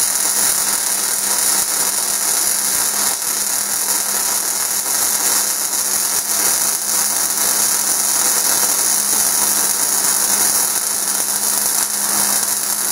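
A welding arc crackles and sizzles steadily up close.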